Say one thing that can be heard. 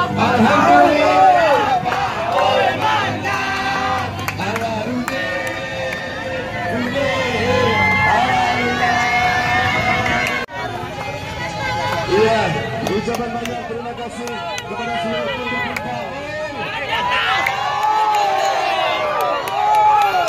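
Many men and women talk excitedly nearby.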